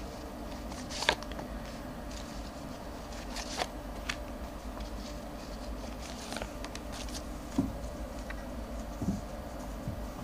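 Cards tap and slide onto a table.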